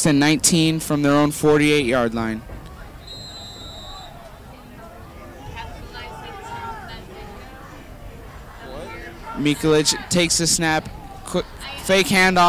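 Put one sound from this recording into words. A large crowd murmurs and cheers in an open-air stadium.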